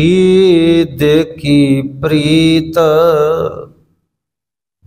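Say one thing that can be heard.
A man sings a prayer melodiously through a microphone, then falls silent.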